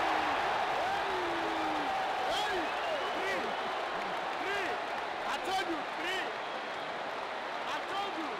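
A young man shouts excitedly close by.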